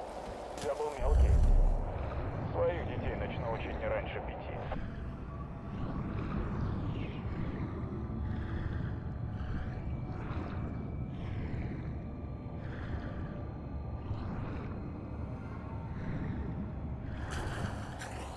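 Water gurgles and bubbles, heard muffled from underwater.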